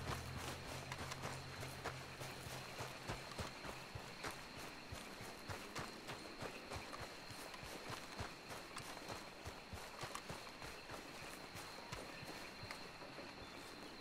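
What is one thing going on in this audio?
Footsteps rustle softly through grass.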